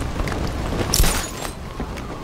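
A heavy landing thuds on metal.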